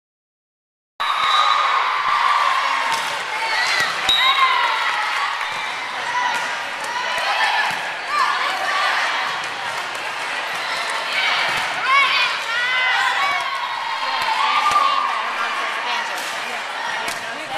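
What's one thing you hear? Sneakers squeak on a hardcourt floor.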